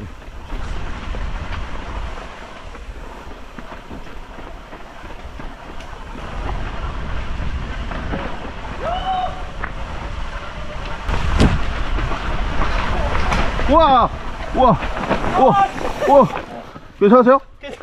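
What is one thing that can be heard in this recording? Bicycle tyres rumble and crunch over a bumpy dirt trail.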